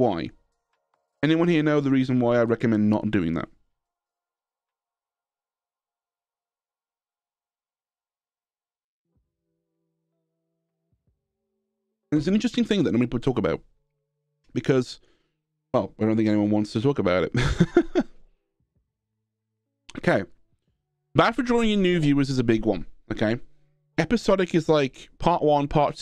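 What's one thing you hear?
A young man talks calmly and closely into a microphone, in short bursts with pauses.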